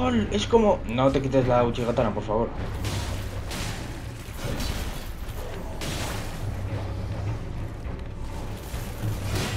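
Sword blows strike with sharp whooshes and thuds.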